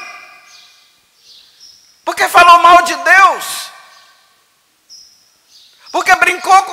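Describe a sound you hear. A middle-aged man speaks calmly and slowly into a microphone, his voice echoing in a large hall.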